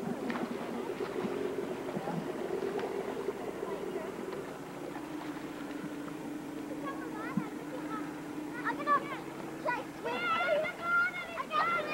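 Oars splash in water as a small boat is rowed.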